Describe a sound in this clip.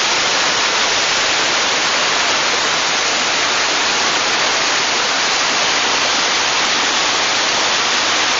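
A fast stream rushes and splashes over rocks close by.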